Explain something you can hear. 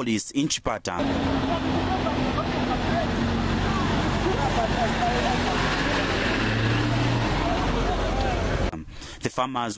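A truck engine rumbles as it drives past.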